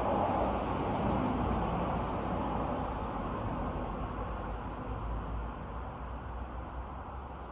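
Wind rustles through the trees outdoors and slowly eases.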